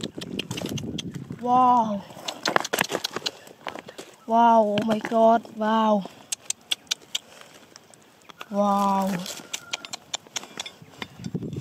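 Small rocks clink and scrape as hands move them.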